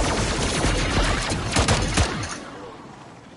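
Loud explosions and gunfire rumble and crack.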